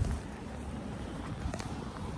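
A pony's hooves crunch on gravel.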